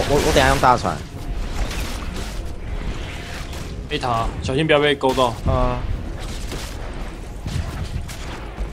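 Magic spells zap and crackle during a fight in a game.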